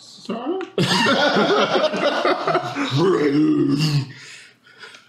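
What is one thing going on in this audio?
A man laughs loudly over an online call.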